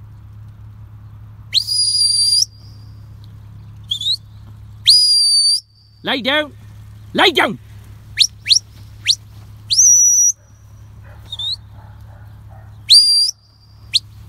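Sheep trot across grass.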